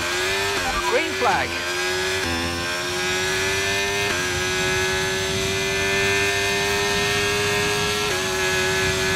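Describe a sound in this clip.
A racing car engine's pitch drops sharply with each gear change.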